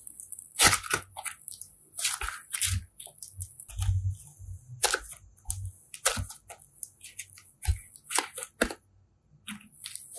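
Soft slime squelches and crackles as hands squeeze and fold it.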